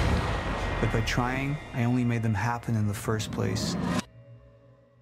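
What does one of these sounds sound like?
A man speaks tensely and threateningly, close by.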